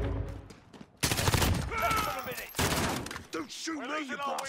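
Rifle shots ring out in rapid, loud bursts.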